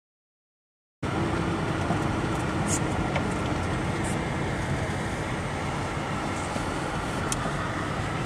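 Tyres roll on a snowy road.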